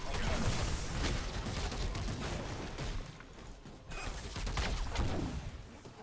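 Fiery explosions burst.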